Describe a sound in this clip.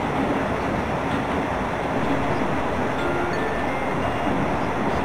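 A train engine hums and rumbles steadily as the train rolls along the track.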